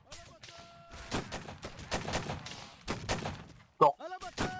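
Muskets fire in a ragged volley.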